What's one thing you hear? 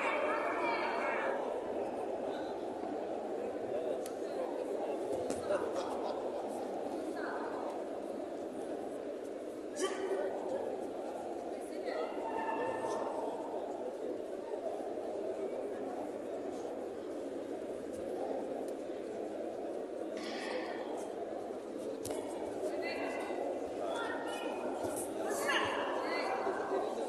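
Spectators shout and cheer now and then from the stands.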